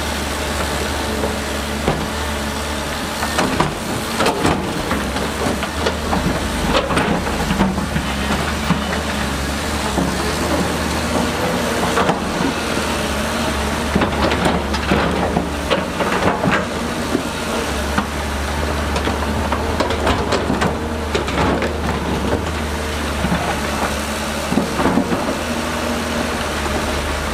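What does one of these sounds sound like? An excavator bucket scrapes and clanks through wet mud and rock.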